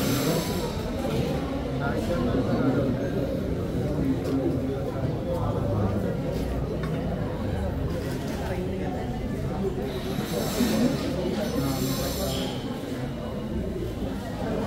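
A crowd of men and women chatter and murmur close by.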